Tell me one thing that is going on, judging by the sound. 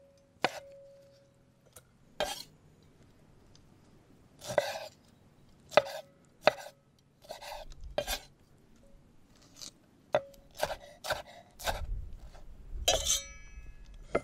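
A knife chops sharply on a wooden board.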